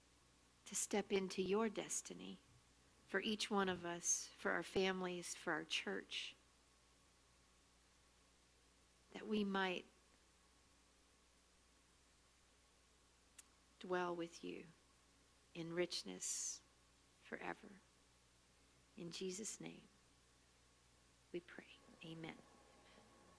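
A woman speaks calmly and slowly into a microphone, with long pauses.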